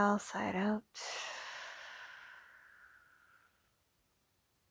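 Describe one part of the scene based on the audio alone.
A young woman exhales long and slowly.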